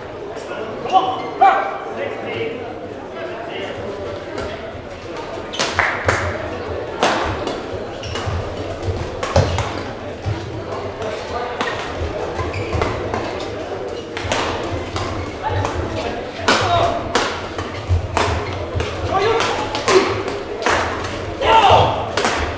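Badminton rackets strike a shuttlecock with sharp pops in a large echoing hall.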